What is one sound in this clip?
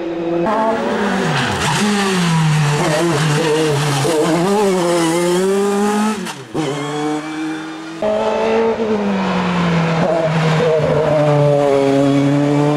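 A racing car engine roars loudly, revving up and down.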